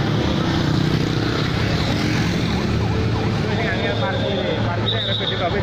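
Cars drive past on the road.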